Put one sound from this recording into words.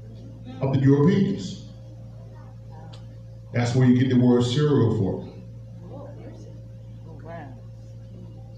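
A man speaks in short bursts into a microphone, heard through a loudspeaker.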